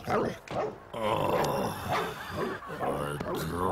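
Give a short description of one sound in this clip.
A man grumbles in a nasal voice.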